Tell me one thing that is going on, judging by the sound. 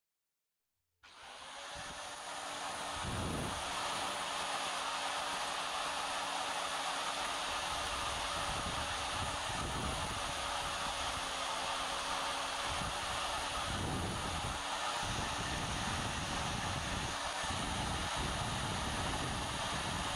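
An electric grinder whirs loudly and grinds against metal.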